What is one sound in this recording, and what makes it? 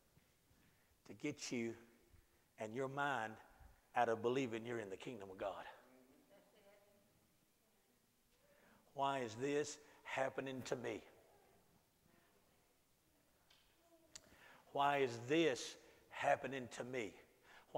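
A middle-aged man lectures loudly and with animation in a room with a slight echo.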